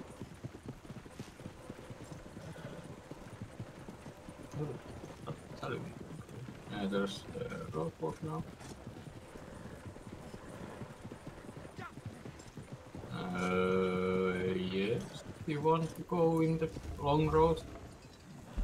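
A horse's hooves clop steadily on a dirt path.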